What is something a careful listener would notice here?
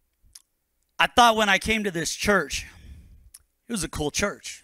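A man speaks calmly into a microphone, heard through loudspeakers in a large room.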